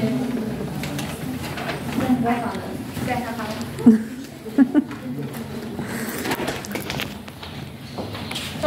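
A young woman speaks through a microphone in an echoing hall.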